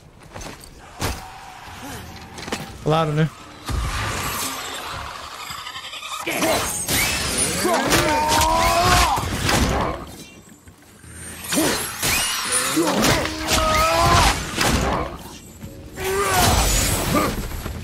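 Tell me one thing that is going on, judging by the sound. Heavy blows land in a fight, with sharp thuds and clangs.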